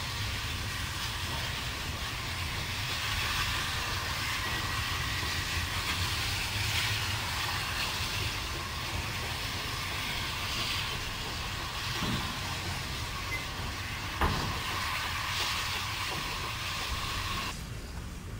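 A steam locomotive chuffs steadily in the distance as it hauls a train.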